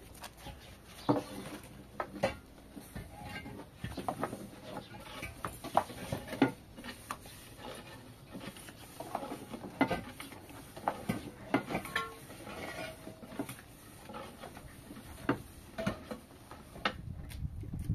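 Wooden rolling pins knock and tap against boards as dough is rolled.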